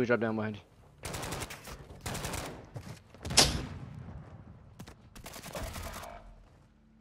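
Gunshots crack in quick bursts.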